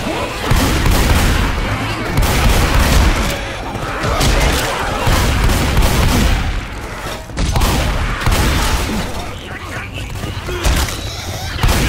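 Zombies growl and snarl close by.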